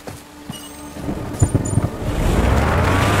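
A vehicle engine roars as it approaches.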